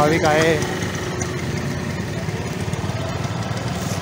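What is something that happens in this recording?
A motor scooter engine idles and pulls away.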